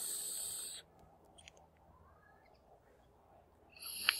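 A man exhales a slow breath.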